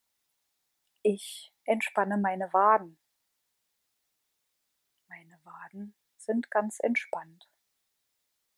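A woman speaks calmly, with long pauses.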